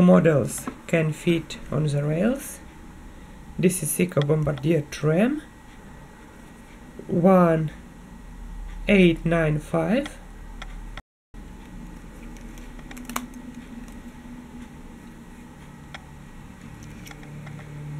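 Plastic toy trains click and clatter as they are handled.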